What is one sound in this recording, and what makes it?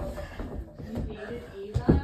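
A basketball bounces on a carpeted floor.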